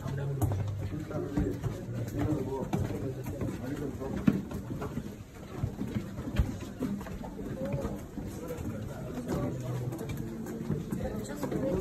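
Footsteps scuff on stone steps.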